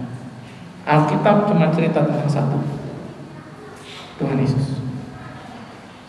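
A middle-aged man speaks with animation through a microphone in an echoing room.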